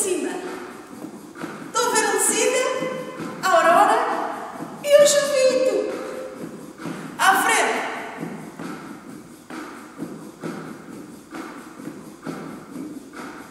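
Sneakers tap and shuffle on a wooden floor.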